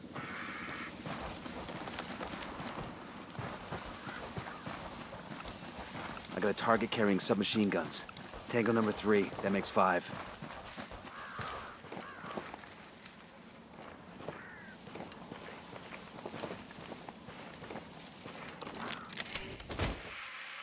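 Footsteps crunch through dry brush and dirt.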